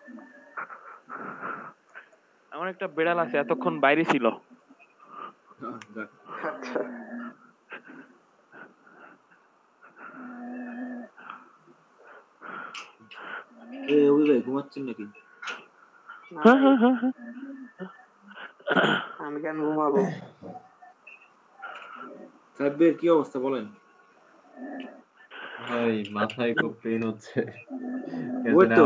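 Young men take turns talking casually over an online call.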